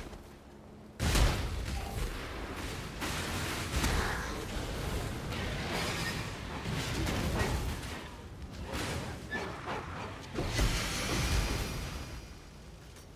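Game spells explode and crackle in bursts.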